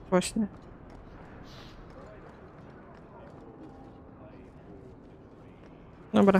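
Armoured footsteps tread steadily on stone paving.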